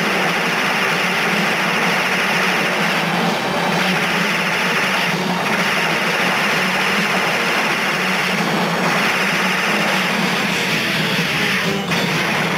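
Rapid gunfire and explosions crackle in a video game.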